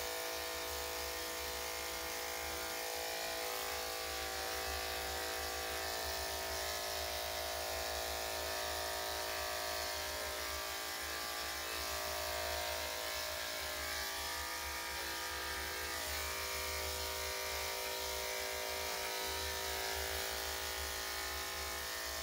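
Electric hair clippers buzz steadily.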